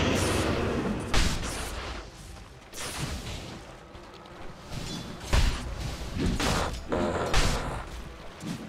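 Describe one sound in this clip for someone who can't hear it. Game spell effects crackle and whoosh in bursts.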